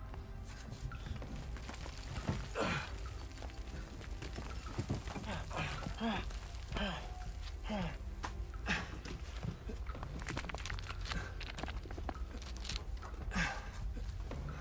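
A young man grunts and strains with effort close by.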